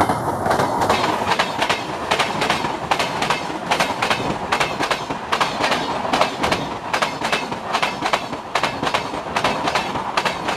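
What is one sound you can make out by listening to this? Train wheels clack rhythmically over rail joints.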